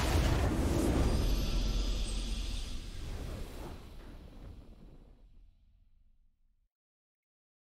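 A game's victory fanfare swells and fades away.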